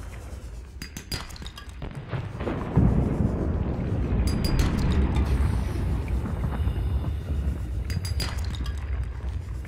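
A cutting beam hisses and whirs steadily against rock.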